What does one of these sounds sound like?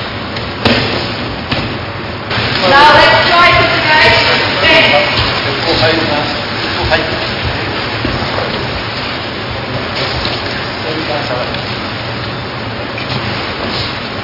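A body thumps onto a mat as a person is thrown.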